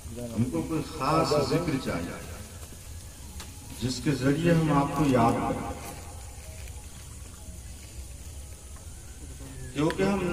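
An elderly man preaches into a microphone, heard through a loudspeaker outdoors, in bursts with pauses.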